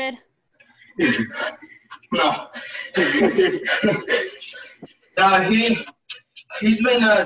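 A young woman laughs loudly through an online call.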